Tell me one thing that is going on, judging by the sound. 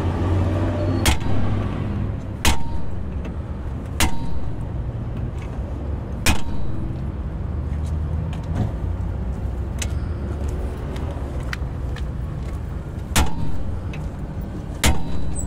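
A hammer strikes metal with sharp ringing clangs.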